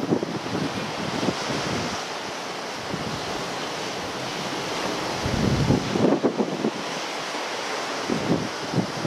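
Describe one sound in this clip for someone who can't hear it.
Waves wash steadily across the open sea.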